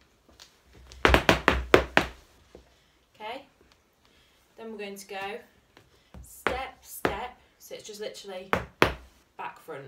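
Hard dance shoes tap and click sharply on a hard floor.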